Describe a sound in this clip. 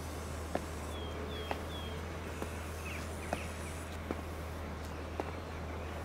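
Hard-soled shoes step slowly on pavement.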